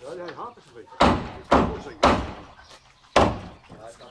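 A hammer strikes wood in loud, ringing blows.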